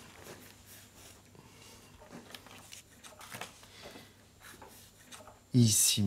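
A sheet of paper slides across a wooden table.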